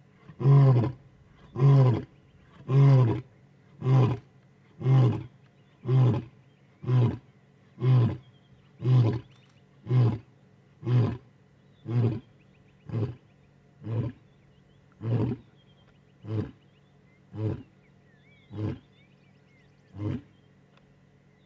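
A lion roars close by in a series of deep grunts that slowly grow shorter and quieter.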